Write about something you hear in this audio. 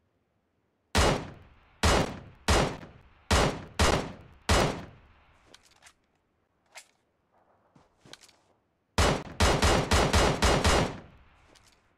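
Rifle shots crack loudly one after another.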